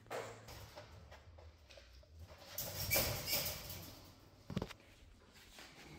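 A wire crate rattles and clanks.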